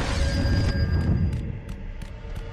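An energy blast roars loudly.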